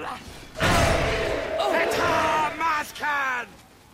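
Swords clash in a fight.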